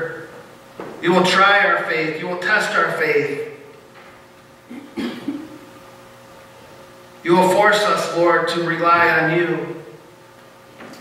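A man speaks calmly in short phrases through a headset microphone.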